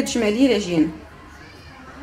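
Flour pours softly into a bowl.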